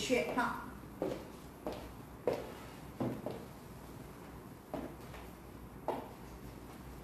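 High heels click on a wooden floor and fade as a woman walks away.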